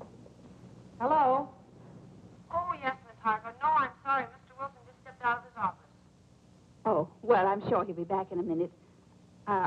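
A woman talks calmly on a phone, close by.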